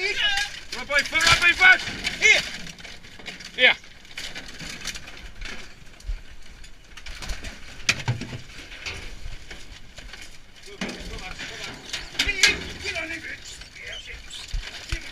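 Dogs scrabble and rustle through dry debris.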